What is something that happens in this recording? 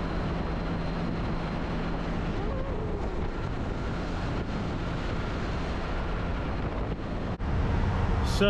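Wind roars loudly past a motorcycle at highway speed.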